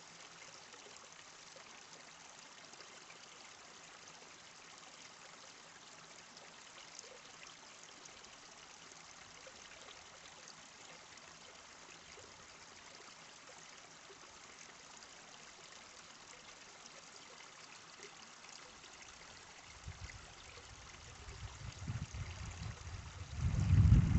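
A shallow stream trickles softly over stones.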